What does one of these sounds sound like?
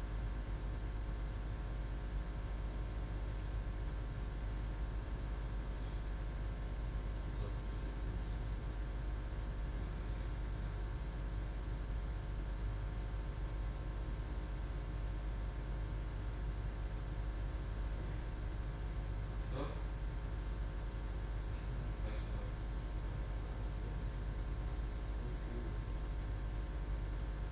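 A projector fan hums steadily.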